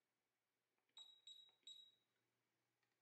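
A multimeter gives three short high beeps.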